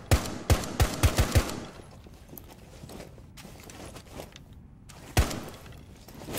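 Gunshots bang in quick bursts, close by.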